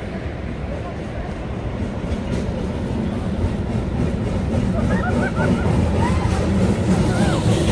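Waves break and wash onto a beach.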